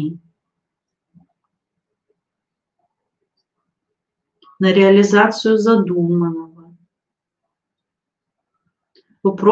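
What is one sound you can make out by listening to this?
A young woman speaks calmly into a nearby microphone.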